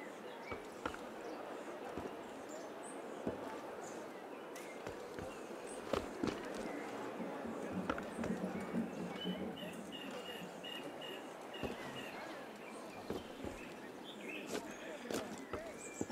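Footsteps patter and scrape across roof tiles.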